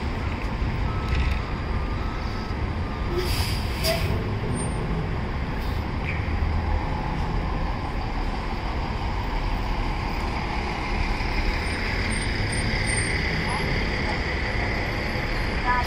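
A bus engine idles and rumbles nearby.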